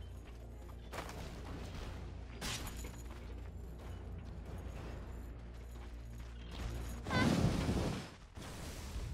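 Magical spell effects whoosh and crackle in bursts.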